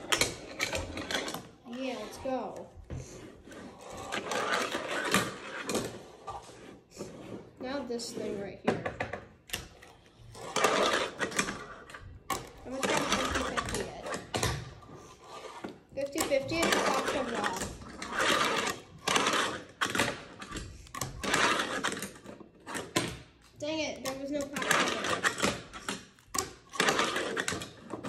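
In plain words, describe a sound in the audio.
A fingerboard clacks and rolls on a wooden ramp.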